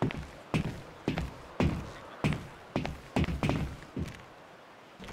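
Footsteps thud on a metal walkway.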